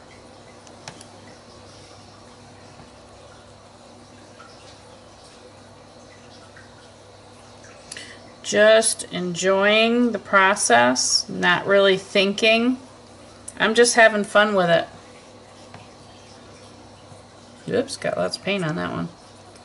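A paintbrush softly dabs and brushes paint onto paper.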